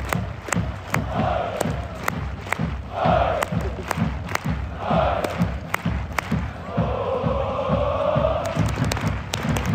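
A large stadium crowd chants loudly in unison.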